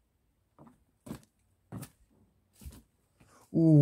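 Footsteps crunch on dry leaves and loose rubble.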